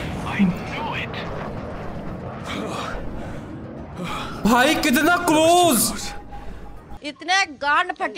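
A second young man speaks over an online call.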